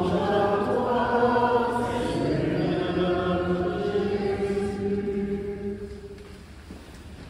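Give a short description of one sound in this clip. An elderly man chants in a large echoing space.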